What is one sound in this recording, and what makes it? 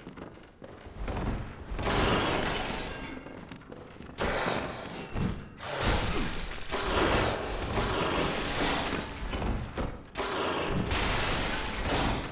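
Blades slash and strike flesh.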